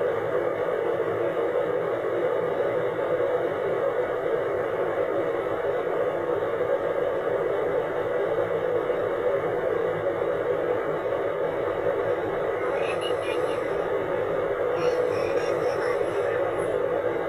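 A car drives steadily along a road, its engine and tyres humming.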